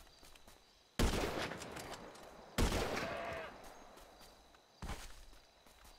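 A rifle fires loudly and echoes.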